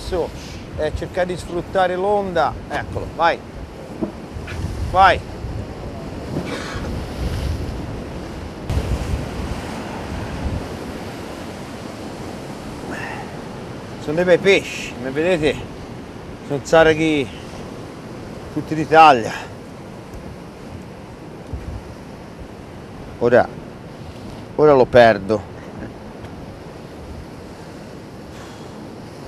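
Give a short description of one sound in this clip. Waves wash against rocks outdoors.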